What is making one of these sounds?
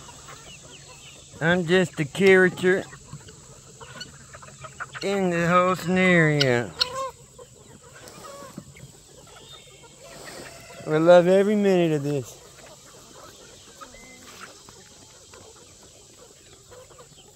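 Hens cluck softly outdoors.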